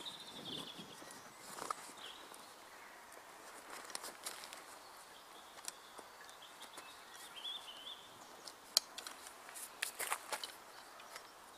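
Tent poles click and clatter as they are handled.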